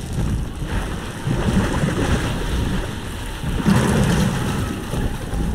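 Water pours and splashes nearby.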